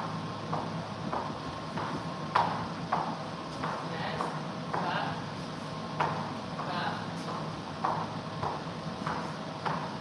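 Shoes step and stomp in rhythm on a wooden floor.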